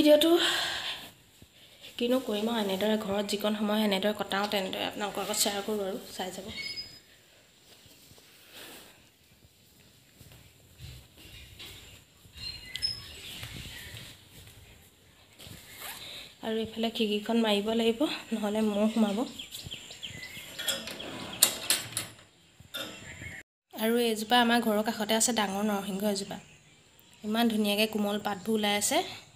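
A woman speaks calmly, close to the microphone, in short bursts with pauses.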